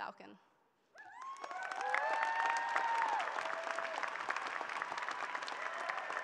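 A large crowd applauds and cheers in a large echoing arena.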